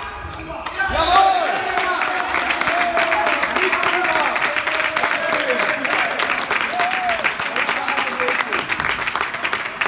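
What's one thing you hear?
A group of young men cheer and talk loudly together.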